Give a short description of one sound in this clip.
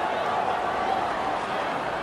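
A stadium crowd roars in the distance.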